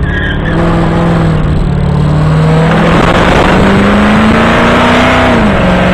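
A car engine hums and revs loudly from inside the car.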